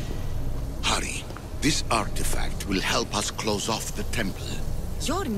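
A man speaks urgently, close by.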